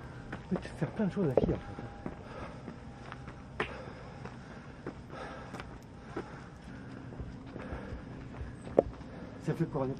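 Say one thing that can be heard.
Footsteps scuff on a paved lane.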